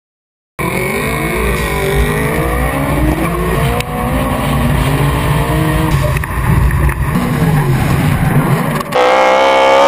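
A racing car engine roars and revs up and down close by.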